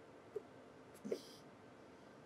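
A small metal part taps lightly on a wooden surface.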